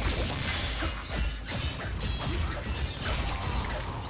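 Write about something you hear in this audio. A melee weapon slashes and strikes.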